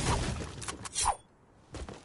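A pickaxe strikes a tree trunk with sharp thuds.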